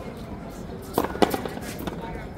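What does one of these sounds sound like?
A racket strikes a ball with a sharp smack.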